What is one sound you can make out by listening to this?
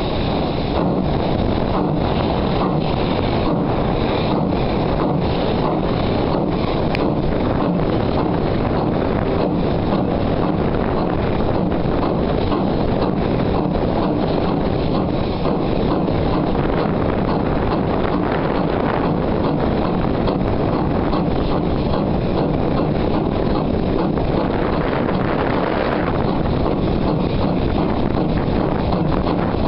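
A steam locomotive chuffs rhythmically as it rolls along.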